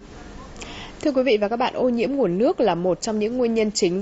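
A woman speaks calmly and clearly into a microphone, like a news presenter.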